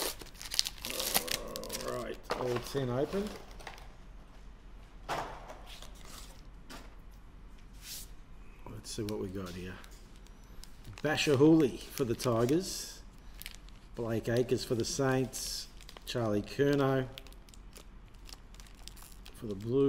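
A young man talks calmly close to the microphone.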